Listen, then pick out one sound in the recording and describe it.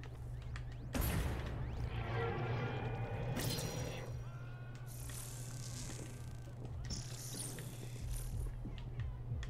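Energy blasts whoosh and crackle in a video game.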